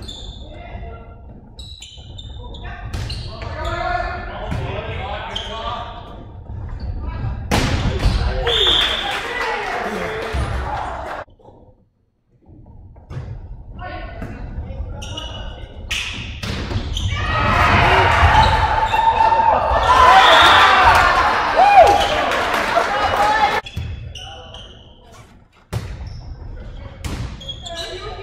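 Young players shout and call to each other in a large echoing gym.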